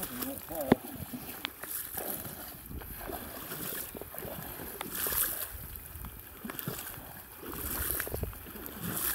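Boots splash and slosh through shallow water.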